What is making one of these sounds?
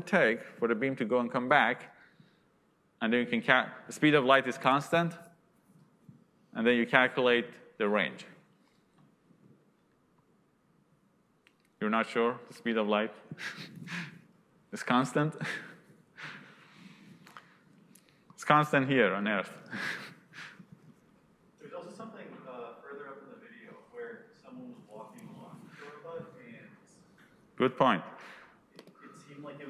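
A young man speaks calmly into a microphone, with pauses.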